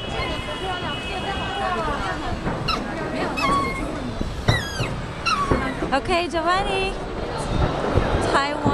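Fireworks boom and thud in the distance.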